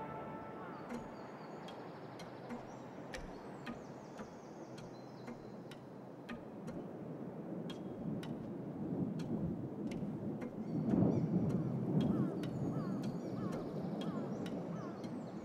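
Light footsteps tap steadily.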